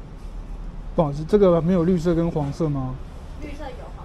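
A man asks a question close by.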